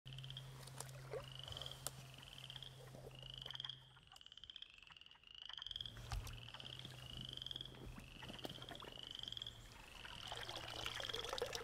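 Water sloshes softly as a net sweeps through shallow water.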